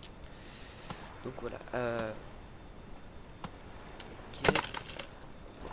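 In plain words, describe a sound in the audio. An axe chops into a wooden log with dull thuds.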